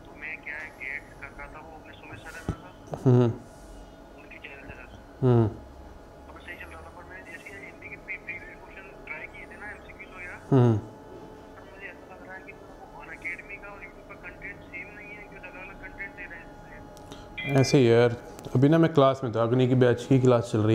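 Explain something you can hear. A man talks into a phone close by, calmly at first and then more loudly.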